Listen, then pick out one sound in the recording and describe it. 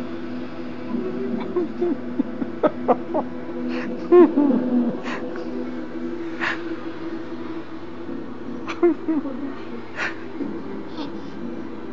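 A toddler babbles and talks softly close by.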